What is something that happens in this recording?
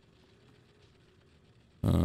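A ball rolls across a wooden floor.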